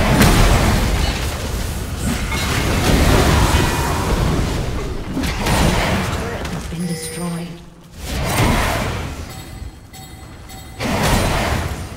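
Game spell effects and attacks clash and crackle in a chaotic fight.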